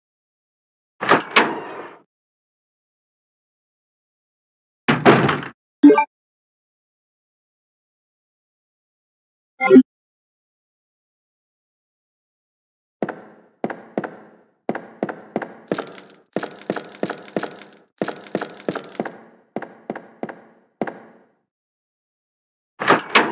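A wooden door creaks open.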